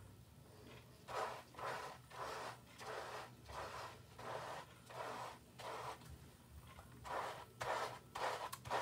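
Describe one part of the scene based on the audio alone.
Hands rub and squish lather through hair in a quick rhythm.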